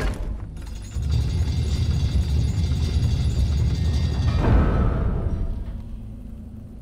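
A heavy stone door grinds and rumbles as it slides open.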